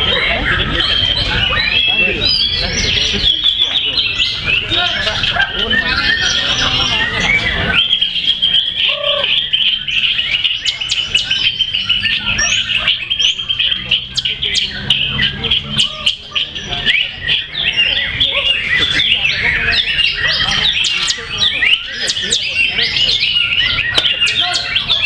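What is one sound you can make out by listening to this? A songbird sings a rapid, varied song of chirps and whistles close by.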